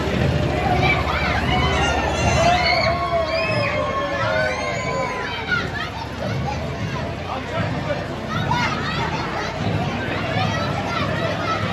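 Children shout and squeal excitedly close by.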